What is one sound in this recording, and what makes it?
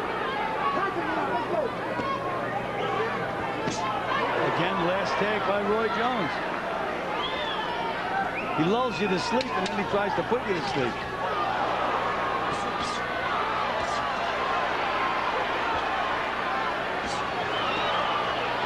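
Boxing gloves thud against bodies.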